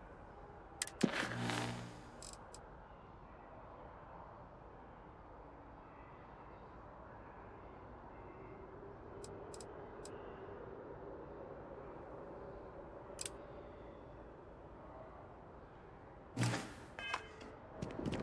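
Soft interface clicks and chimes sound as menu items are selected.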